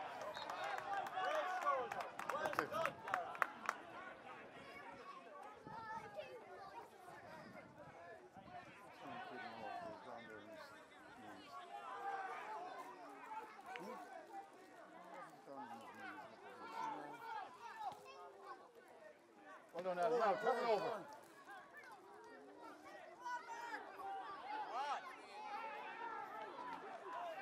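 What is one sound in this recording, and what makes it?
Players shout to each other across the pitch.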